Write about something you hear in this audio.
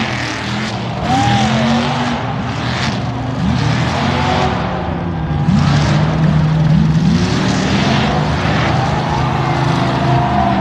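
An engine roars and revs hard, rising and falling in pitch.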